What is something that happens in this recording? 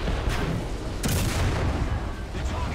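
A tank cannon fires with a sharp blast.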